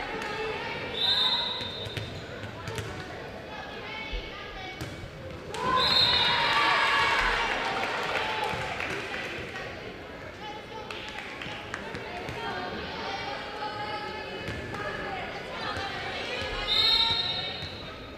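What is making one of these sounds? A whistle blows shortly.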